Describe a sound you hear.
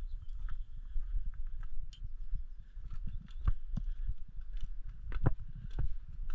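Footsteps crunch on loose stones and gravel.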